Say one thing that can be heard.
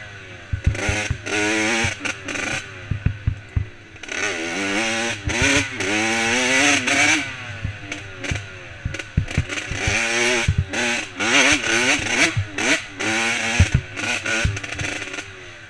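A dirt bike's suspension knocks and thuds over bumps.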